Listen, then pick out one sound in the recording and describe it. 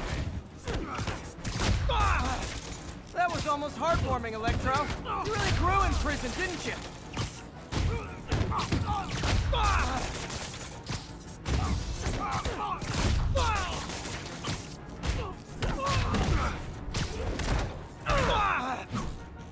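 Heavy punches land with sharp thuds.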